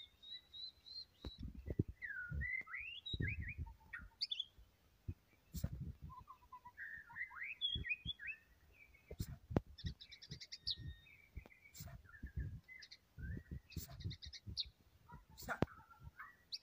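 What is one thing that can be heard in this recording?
A songbird sings varied whistles, trills and chirps close by.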